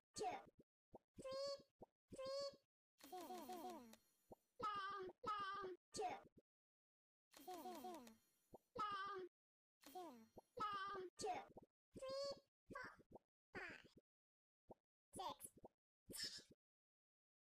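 Game pops and bursts sound as characters merge.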